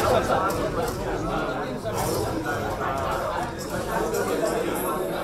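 A middle-aged man speaks steadily through a headset microphone over loudspeakers.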